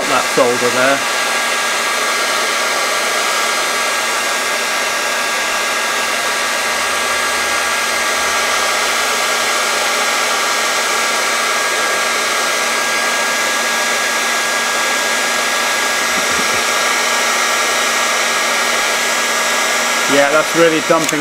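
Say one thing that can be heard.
A heat gun blows with a steady, loud whirring hiss.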